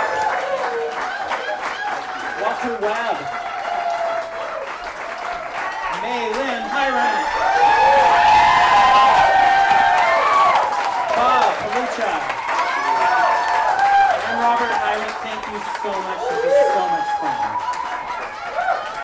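A harmonica plays a bending, wailing melody.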